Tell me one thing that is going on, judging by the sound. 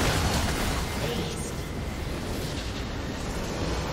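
Game spell effects crackle and burst.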